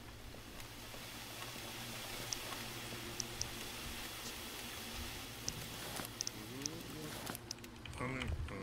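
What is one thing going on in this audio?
Hot oil sizzles and crackles in a deep fryer.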